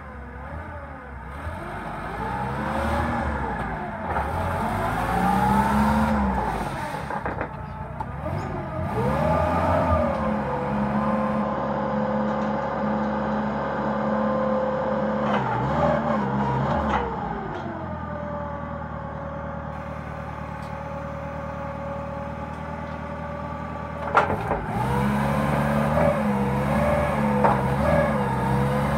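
A forklift engine idles and revs up and down close by.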